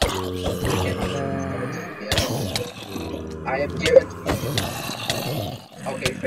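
Sharp thuds sound as a creature is struck with an axe.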